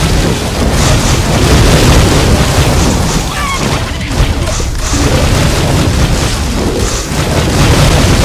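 Explosions burst with booming thuds.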